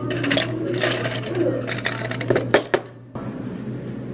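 Ice cubes clatter into a plastic tumbler.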